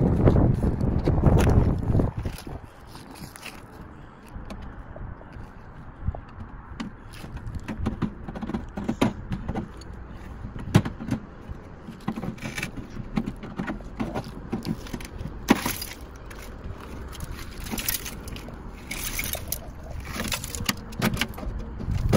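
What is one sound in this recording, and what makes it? Metal clanks and rattles as a man pulls at a car door.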